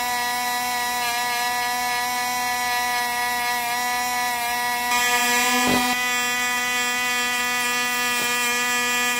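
A cutting disc grinds and scrapes against a metal coin.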